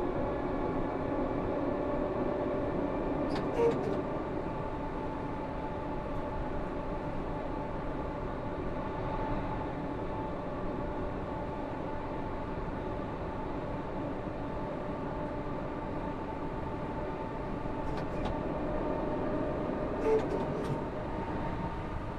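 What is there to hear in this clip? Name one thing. A train's motor hums steadily as the train rolls along the rails.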